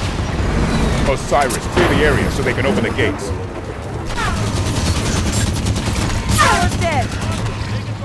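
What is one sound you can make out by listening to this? A mounted machine gun fires rapid bursts.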